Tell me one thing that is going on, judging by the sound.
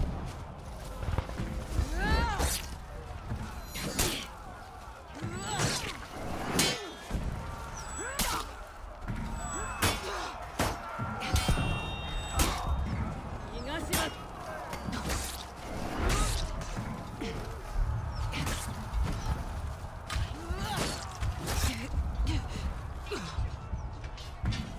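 Warriors grunt and shout in combat.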